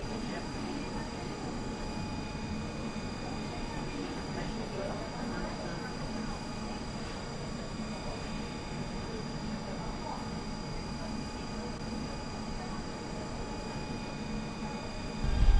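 An electric tram hums steadily while standing still.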